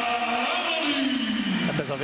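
A young woman shouts with excitement.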